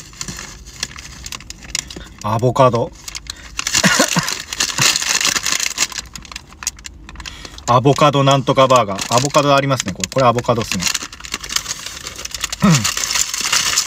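Paper wrapping rustles and crinkles.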